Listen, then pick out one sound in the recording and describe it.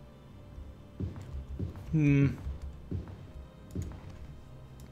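Heavy footsteps thud slowly on a stone floor.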